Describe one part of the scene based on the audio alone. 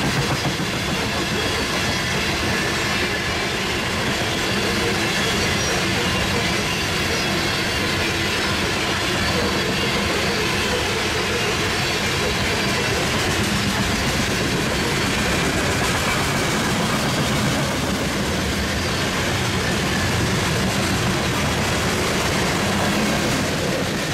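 A freight train rumbles steadily past on the tracks nearby.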